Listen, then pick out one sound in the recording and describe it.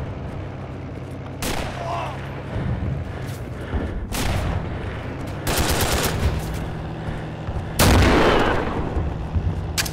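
Footsteps run across dirt.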